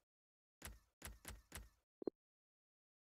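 Short game menu clicks tick in quick succession.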